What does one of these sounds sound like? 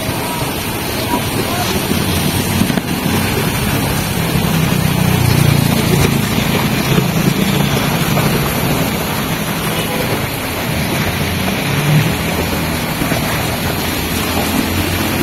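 Motorcycle engines hum as scooters ride by close.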